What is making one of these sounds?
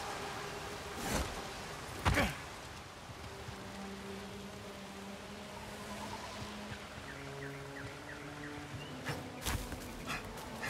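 A body lands with heavy thumps on rock.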